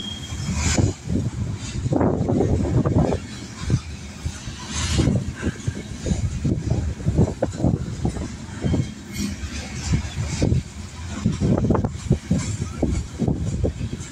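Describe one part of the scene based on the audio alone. A freight train rolls past close by.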